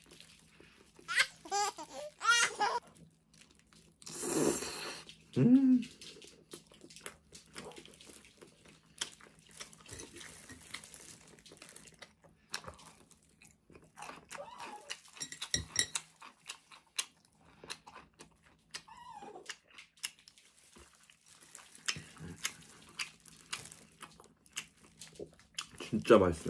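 A man chews food noisily.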